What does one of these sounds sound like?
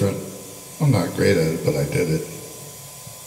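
A middle-aged man speaks loudly and close into a handheld microphone.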